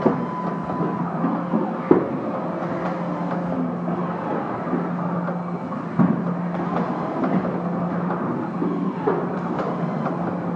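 An automated machine hums and whirs steadily.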